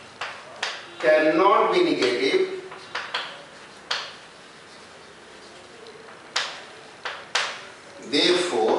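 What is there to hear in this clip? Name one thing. A man speaks calmly nearby, lecturing.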